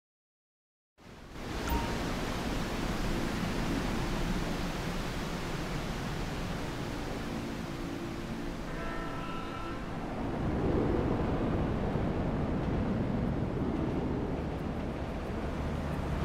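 A waterfall rushes and splashes into a river.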